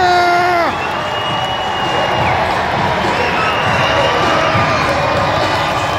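A woman speaks close by, excitedly.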